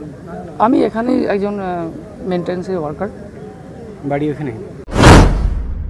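A man speaks calmly and close up into microphones.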